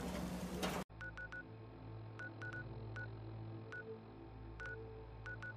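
Short electronic beeps tick again and again.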